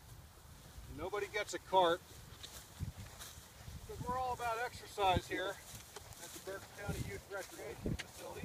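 A man speaks nearby outdoors.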